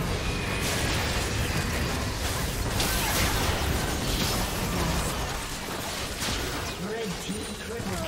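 Spell effects whoosh and blast in a game fight.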